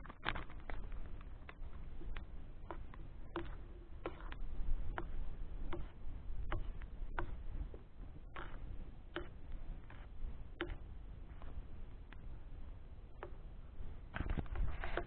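Small objects click and tap as they are handled close by.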